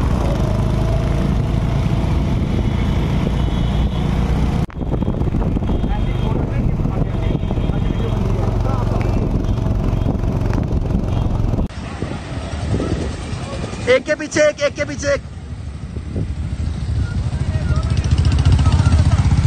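Motorcycle engines rumble along a road.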